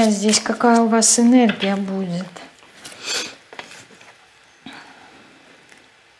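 Playing cards shuffle and slide in a woman's hands.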